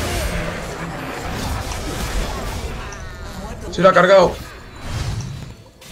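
Game combat effects whoosh and clash during a fight.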